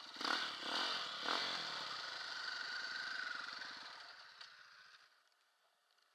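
A motorcycle engine runs loudly, then winds down and stops.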